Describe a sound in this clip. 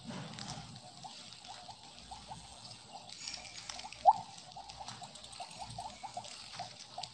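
Quick little blips chime again and again as a game snake gobbles up glowing pellets.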